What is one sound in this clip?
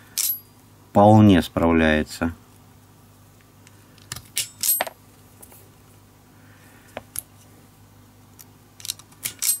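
A wire stripper clicks and snaps shut on a cable, several times.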